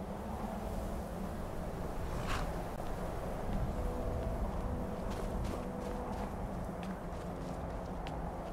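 Footsteps crunch slowly on snowy ground.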